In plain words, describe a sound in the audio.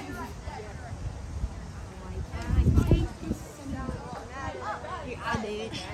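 Young boys talk quietly close by, outdoors.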